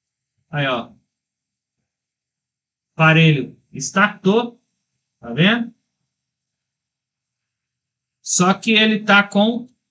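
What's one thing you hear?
A man speaks calmly and close to a microphone, in short phrases with pauses.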